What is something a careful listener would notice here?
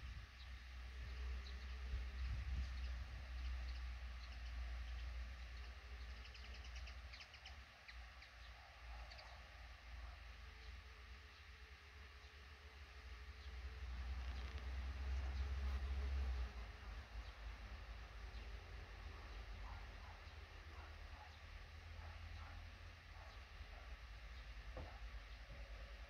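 Baby birds chirp faintly in a nest.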